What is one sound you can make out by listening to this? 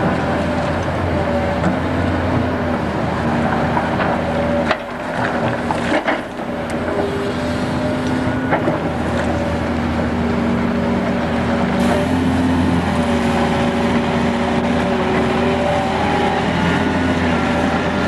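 A diesel excavator engine rumbles and whines steadily close by.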